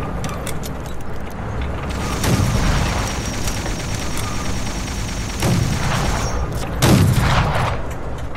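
A tank engine rumbles steadily.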